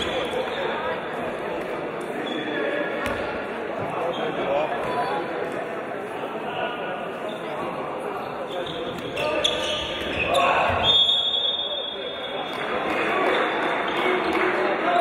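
Spectators murmur and call out in a large echoing hall.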